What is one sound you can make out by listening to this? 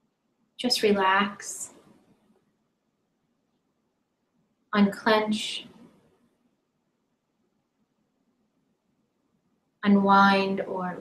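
A woman speaks calmly and slowly close to a microphone, with long pauses.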